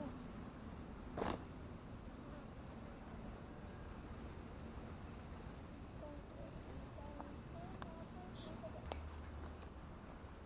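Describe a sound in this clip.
Wind blows steadily outdoors, rustling grass and leaves.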